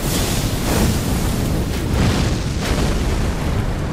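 A large burst of fire whooshes and roars.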